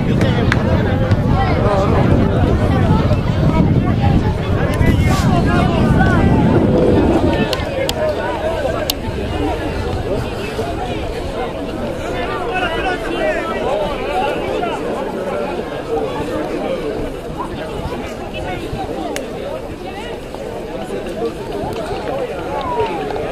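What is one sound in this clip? Players shout and call to each other across an open field.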